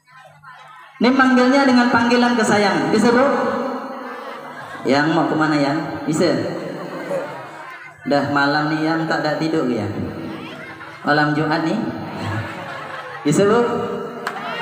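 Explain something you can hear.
A man sings loudly into a microphone over loudspeakers.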